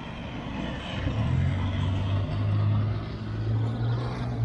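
A car drives past on a nearby street.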